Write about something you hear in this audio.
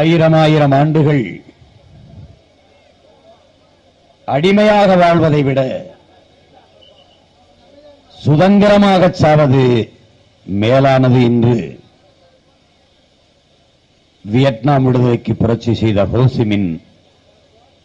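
A man speaks forcefully into a microphone in long, drawn-out phrases with pauses between them.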